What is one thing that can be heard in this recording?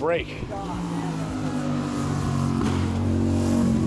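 A car engine revs and roars as it accelerates away.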